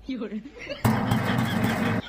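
A man knocks on a wooden door.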